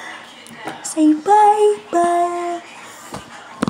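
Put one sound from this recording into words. A toddler giggles and babbles.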